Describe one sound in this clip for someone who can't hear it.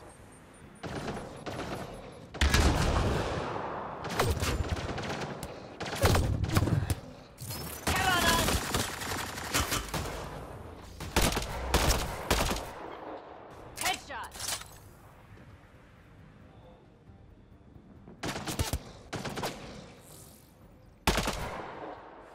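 Gunshots crack in sharp bursts, some echoing.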